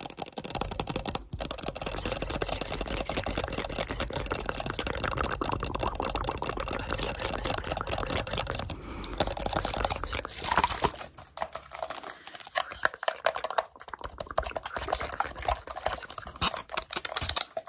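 Fingertips tap and scratch rapidly on a plastic bottle close by.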